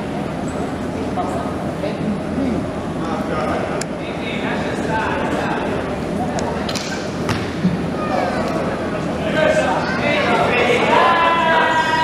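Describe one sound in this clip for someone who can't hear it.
Shoes squeak sharply on the court.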